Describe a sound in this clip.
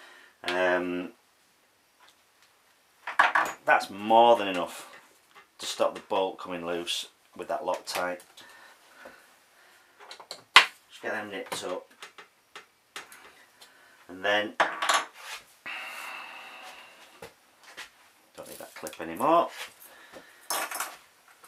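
Small metal parts click and rattle as hands work on a bicycle frame.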